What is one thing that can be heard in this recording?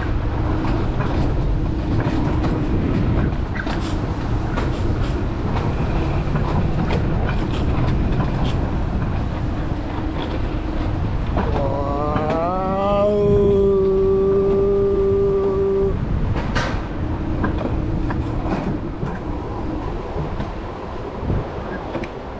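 A coaster sled rumbles and rattles along a metal track.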